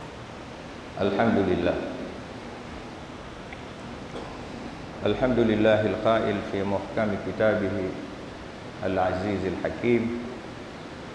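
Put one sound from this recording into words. A man speaks forcefully into a microphone in an echoing hall, with long pauses.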